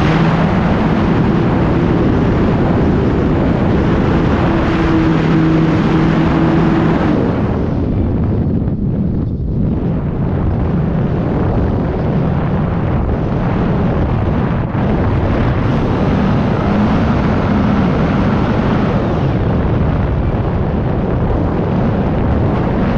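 An aircraft engine drones loudly and steadily.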